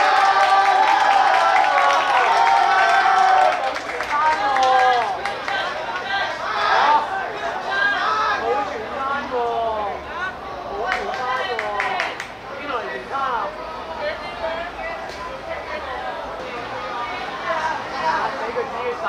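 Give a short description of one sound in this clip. Teenage boys shout and call out to each other outdoors.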